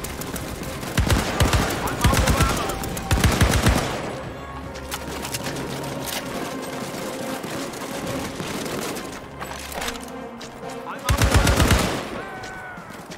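A rifle fires in quick, loud bursts of shots.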